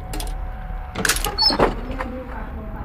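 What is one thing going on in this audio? A metal chest lid bangs open.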